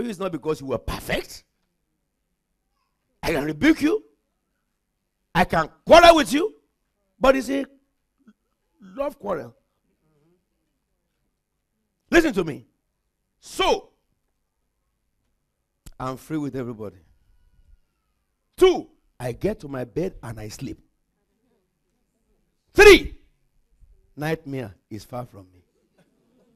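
A man speaks in short bursts with animation through a microphone, in an echoing hall.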